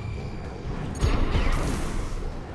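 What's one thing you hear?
A heavy gun fires with a deep, booming blast.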